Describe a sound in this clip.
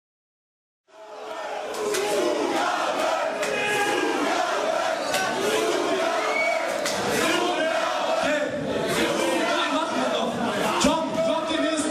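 A man raps loudly into a microphone over a loudspeaker.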